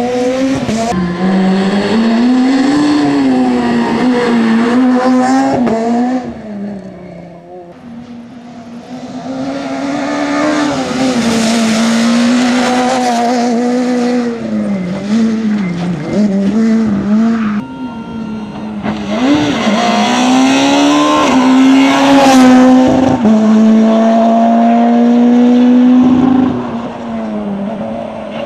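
A rally car engine roars and revs hard, rising and falling in pitch as gears change.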